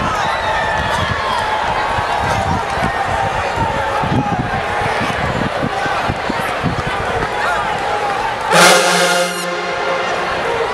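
A stadium crowd chatters and cheers in the background.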